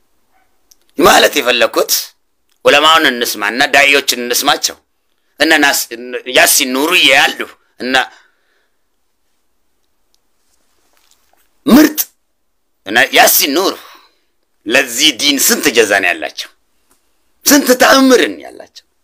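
A man speaks with animation close to a microphone, in bursts with pauses.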